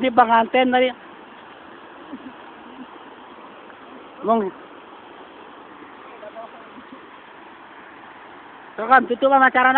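A young man speaks loudly close by.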